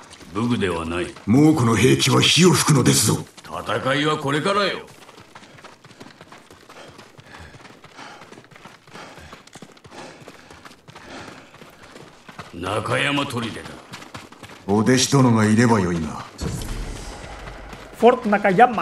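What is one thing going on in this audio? A man speaks into a microphone.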